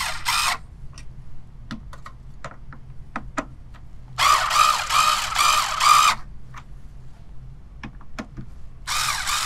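Small metal parts click and tap.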